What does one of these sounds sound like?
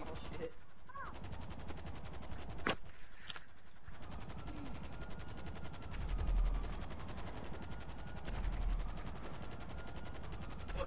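A helicopter's rotor chops steadily.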